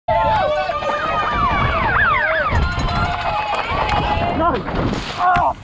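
A crowd cheers and whistles loudly close by.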